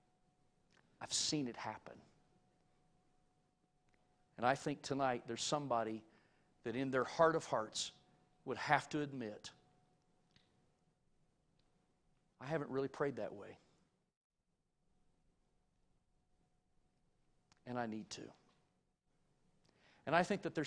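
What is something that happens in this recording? A middle-aged man speaks with animation into a clip-on microphone, pausing between phrases.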